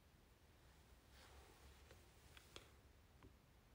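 Hair rustles close by as fingers brush through it.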